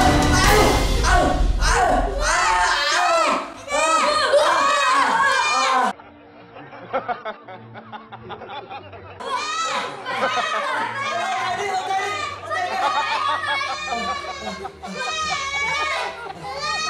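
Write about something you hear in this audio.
Several young boys shout and yell excitedly close by.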